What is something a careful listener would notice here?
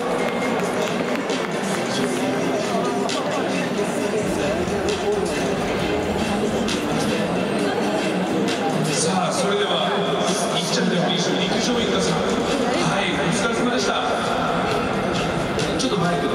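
A man speaks into a microphone over a loudspeaker with animation, echoing around a stadium.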